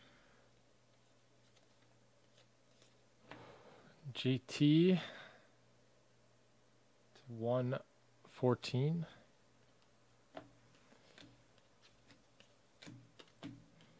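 Trading cards shuffle and slap softly as they are flipped through by hand.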